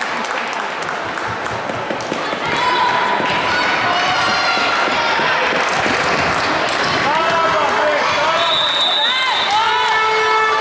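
A ball bounces on a wooden floor in a large echoing hall.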